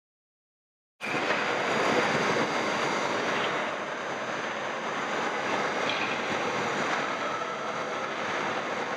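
Hockey skates scrape on ice in a large echoing arena.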